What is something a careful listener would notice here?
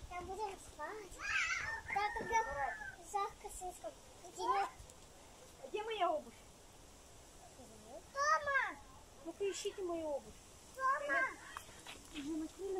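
A child calls out in a high voice.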